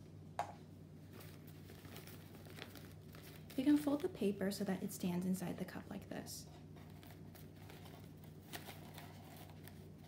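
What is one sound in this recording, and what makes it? A paper filter crinkles and rustles.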